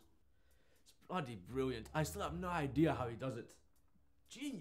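A young man speaks calmly and slowly close by.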